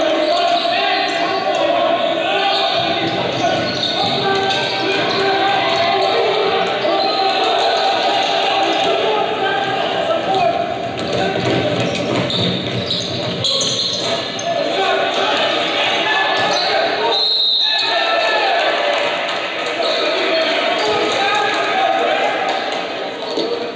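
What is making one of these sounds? A crowd chatters and cheers throughout a large echoing gym.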